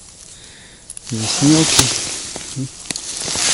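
Snow crunches and scrapes close by.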